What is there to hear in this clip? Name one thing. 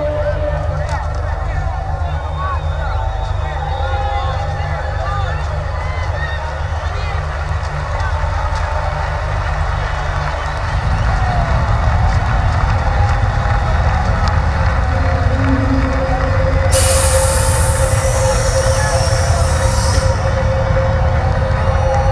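Loud music booms from large loudspeakers across a vast open-air space.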